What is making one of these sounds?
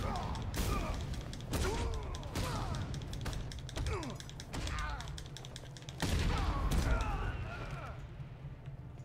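Punches and blows thud and crack in a fast video game fight.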